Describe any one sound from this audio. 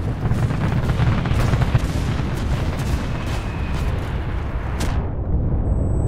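A tank engine rumbles loudly nearby.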